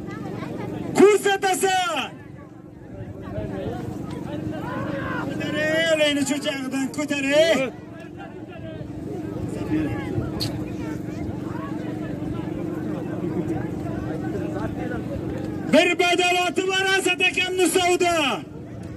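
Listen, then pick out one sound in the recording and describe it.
Men in a crowd shout and cheer loudly.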